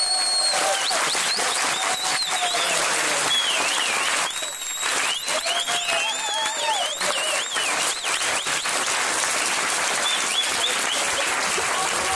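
People in a crowd whistle shrilly.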